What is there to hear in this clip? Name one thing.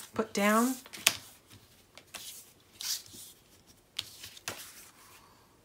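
Stiff card slides and taps against a table top.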